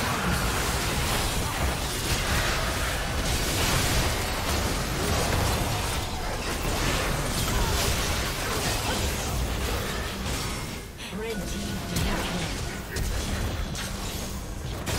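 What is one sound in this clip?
Magic blasts and explosions crackle and boom in a fast video game battle.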